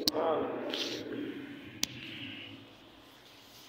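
A man speaks close to a phone microphone.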